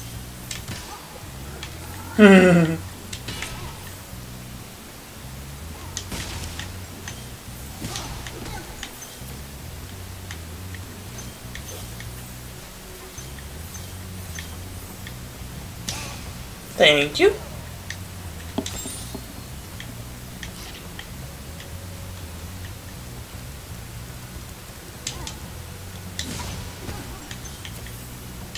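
Game music plays steadily with low notes.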